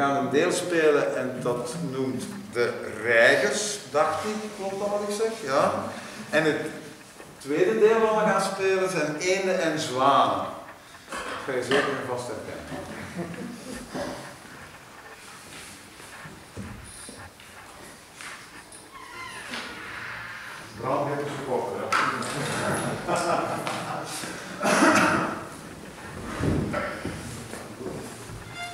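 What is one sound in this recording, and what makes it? A man speaks with animation in an echoing room.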